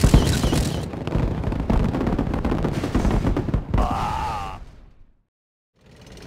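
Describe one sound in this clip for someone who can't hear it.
Explosions boom and crackle in quick succession.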